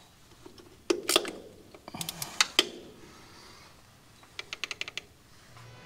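A metal wrench clicks and clinks against an engine part.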